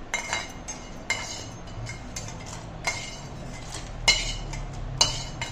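Dry spices rattle as they are tipped into a metal bowl.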